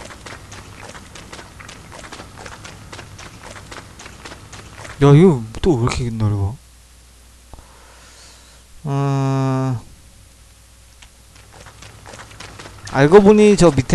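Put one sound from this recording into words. Footsteps tap quickly and steadily on the ground.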